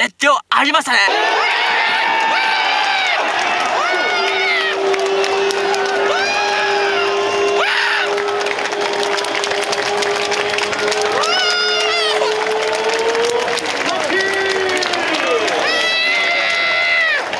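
A crowd of fans cheers and chants outdoors.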